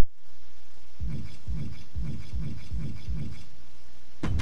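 A game menu cursor ticks quickly several times as it moves down a list.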